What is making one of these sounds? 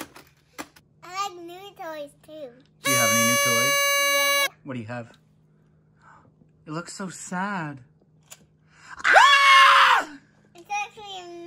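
A young boy talks cheerfully close by.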